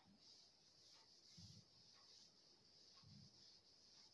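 A cloth rubs across a blackboard.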